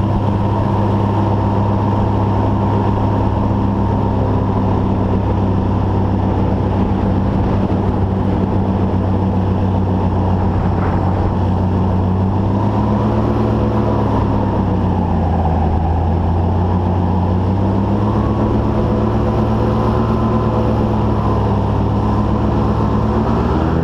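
Water rushes and splashes along a fast-moving hull.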